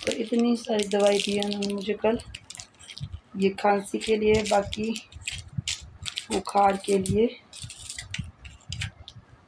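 Plastic medicine packets crinkle as they are handled.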